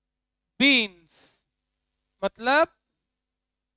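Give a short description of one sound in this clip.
A man speaks in short phrases nearby.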